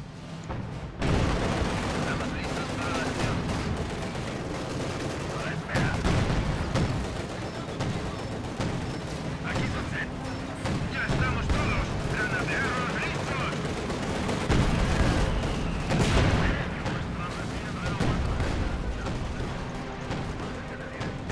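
A tank engine rumbles and its tracks clatter.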